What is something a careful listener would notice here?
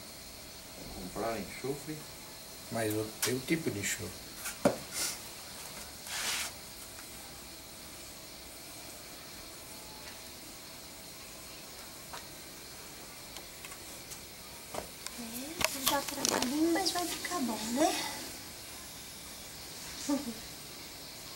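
A middle-aged woman talks casually and close by, in short bursts.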